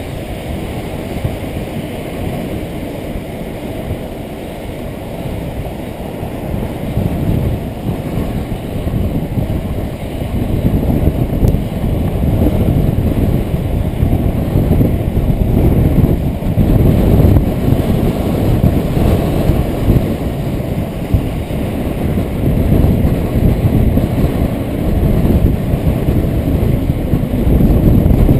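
Wind buffets a helmet-mounted microphone as a skater speeds along.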